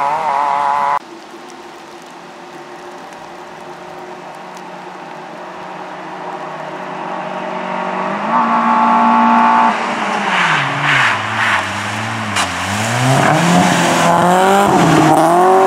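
A rally car engine approaches, growing louder and revving through gear changes.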